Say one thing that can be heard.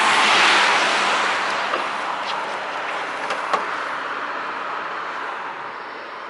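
Wind rushes loudly across the microphone outdoors, slowly easing off.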